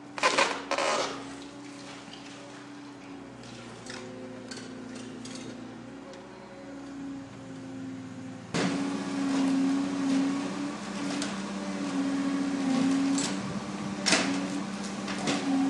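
A hydraulic excavator's diesel engine drones under load.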